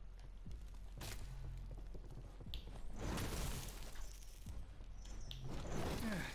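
Footsteps thud quickly on wooden planks.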